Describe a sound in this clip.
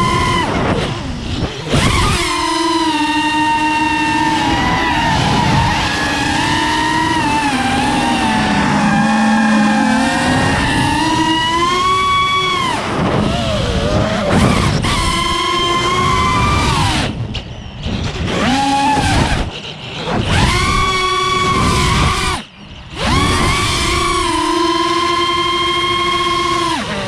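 Drone motors whine loudly, rising and falling in pitch and briefly cutting out.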